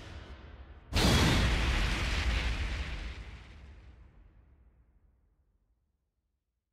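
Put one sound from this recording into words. A loud blast booms and slowly fades.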